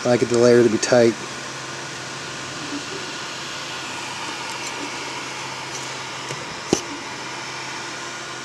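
A 3D printer's fan whirs steadily.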